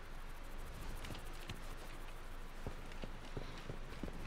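Soft footsteps tap on a hard tiled floor.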